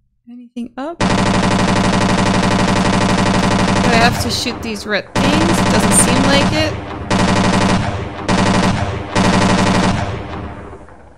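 A machine gun fires in long rapid bursts.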